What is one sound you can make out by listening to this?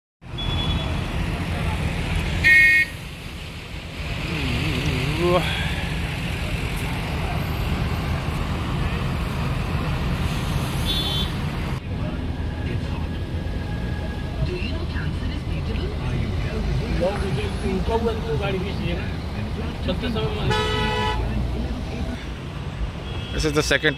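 Truck and car engines idle and rumble in a traffic jam outdoors.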